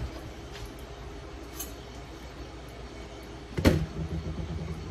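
A glass pot lid clinks against metal.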